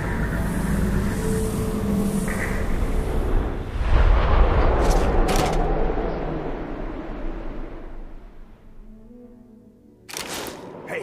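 A deep whooshing rumble swells, then slowly fades away.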